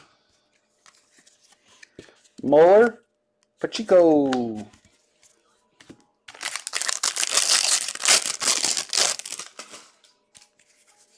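Trading cards flick and rustle against each other.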